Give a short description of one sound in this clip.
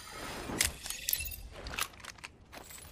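A syringe hisses and clicks as it is injected.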